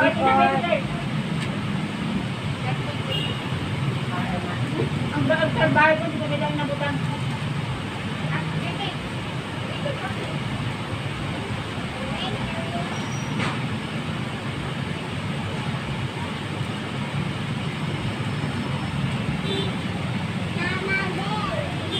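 A woman and a young girl talk casually nearby.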